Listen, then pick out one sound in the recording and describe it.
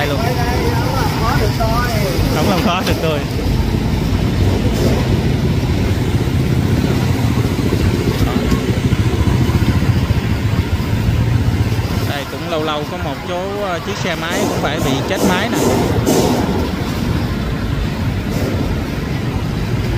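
Motorbike engines rumble nearby.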